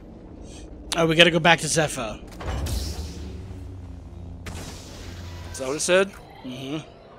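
A lightsaber hums and swooshes as it swings.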